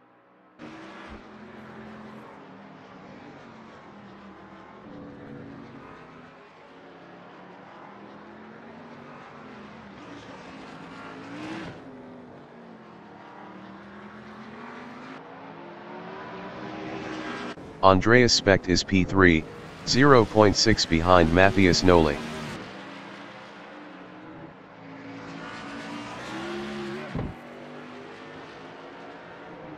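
Race car engines drone and whine at high speed.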